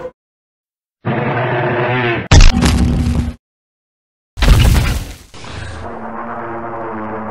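A dinosaur roars loudly.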